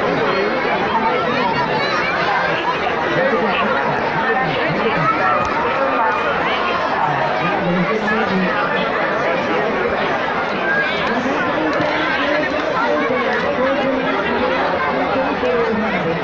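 A large crowd of people chatters and shouts loudly all around, close by.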